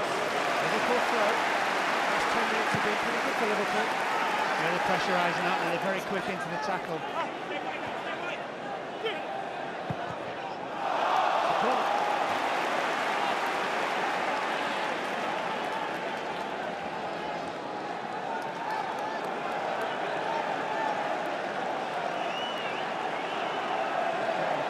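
A large stadium crowd chants and roars throughout, echoing in the open air.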